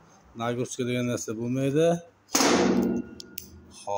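A metal cover bangs shut.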